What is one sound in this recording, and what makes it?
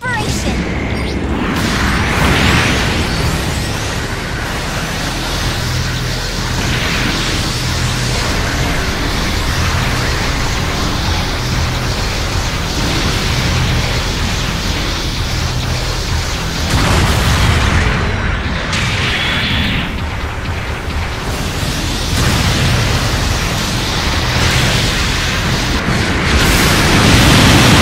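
Heavy thrusters roar.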